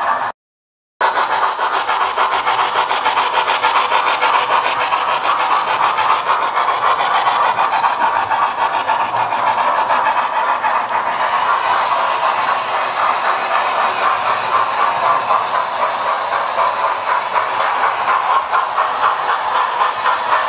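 A model train clatters and rattles steadily along its track.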